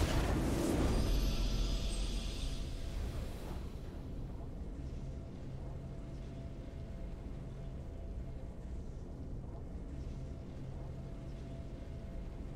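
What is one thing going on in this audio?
A triumphant fanfare plays.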